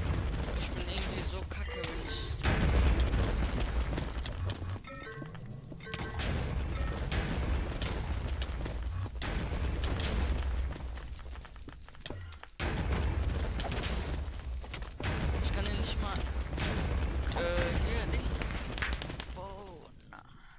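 Explosions boom again and again, loud and close.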